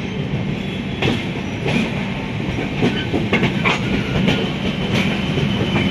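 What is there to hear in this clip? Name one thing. Train wheels clatter and clank over the rail joints.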